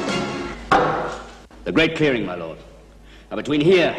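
A metal cup is set down on a wooden table with a knock.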